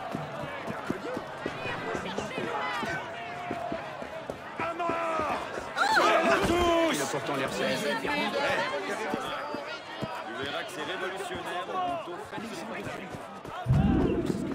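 A crowd of people chatters and shouts nearby.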